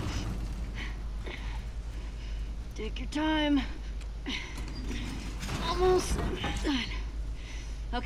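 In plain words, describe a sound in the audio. A metal roller shutter rattles as it slowly rises.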